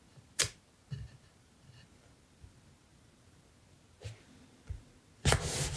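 A small tool taps and scrapes on paper.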